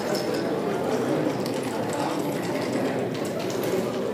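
Dice rattle and tumble onto a wooden board.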